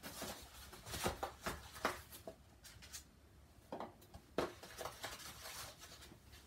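Eggs and a carton knock and click as they are handled.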